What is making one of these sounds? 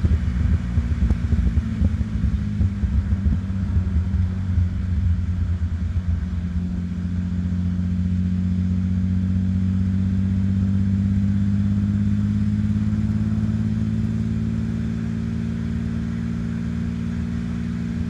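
A car engine rumbles and burbles close by as the car drives along, its pitch rising steadily.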